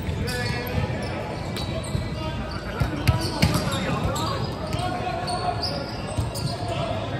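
Players' shoes squeak sharply on a hard floor in a large echoing hall.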